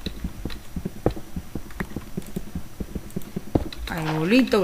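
A pickaxe chips at stone with quick, repeated taps.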